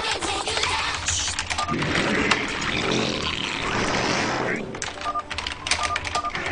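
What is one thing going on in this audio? Game sound effects chirp and click.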